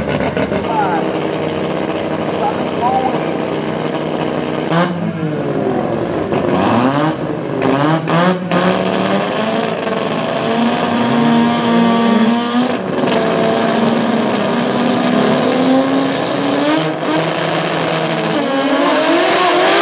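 Race car engines idle and rev loudly.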